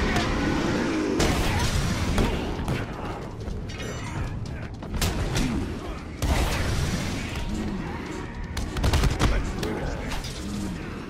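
Men grunt and groan as they are struck.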